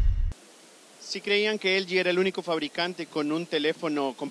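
A man speaks with animation into a handheld microphone, close by.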